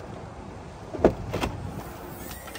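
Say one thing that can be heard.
A car's rear hatch clicks open.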